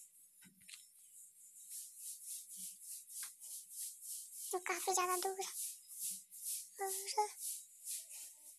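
Footsteps rustle quickly and steadily through grass.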